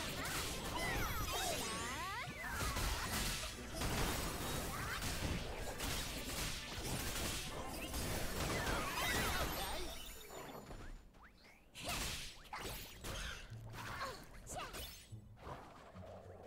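Magic spells and weapon strikes crash and whoosh in quick bursts.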